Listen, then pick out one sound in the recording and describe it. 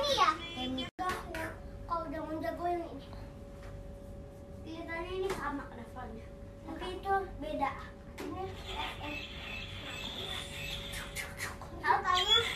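Children laugh and shout while playing.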